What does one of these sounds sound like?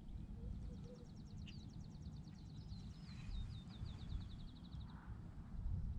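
A fishing reel ticks as it is wound in.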